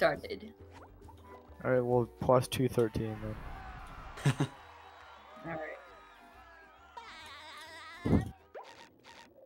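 Cartoonish game sound effects chime and twinkle.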